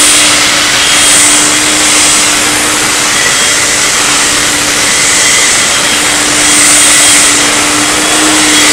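A vacuum cleaner motor runs with a loud, steady roar and hum.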